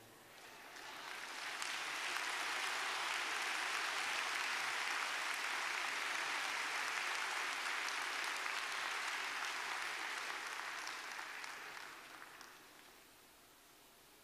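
A large crowd applauds in an echoing hall, then the clapping fades away.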